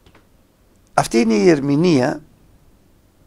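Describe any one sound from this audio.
A middle-aged man speaks clearly into a close microphone.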